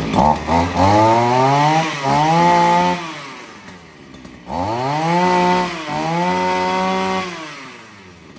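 A small petrol engine revs up loudly and drops back, twice.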